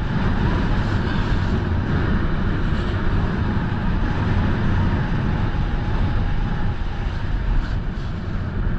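A snowboard scrapes and hisses steadily over packed snow.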